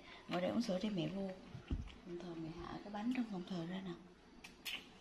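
A young woman talks casually nearby.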